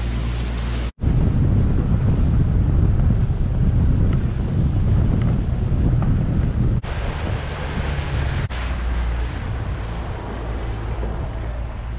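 Wind buffets loudly.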